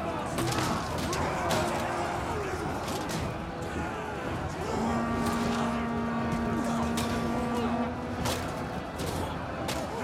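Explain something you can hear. Metal weapons clash and clang against shields.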